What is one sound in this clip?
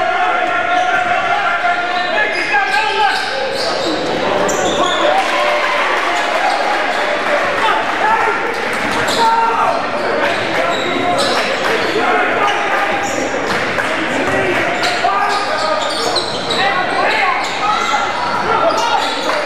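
A crowd of spectators murmurs and cheers in a large echoing gym.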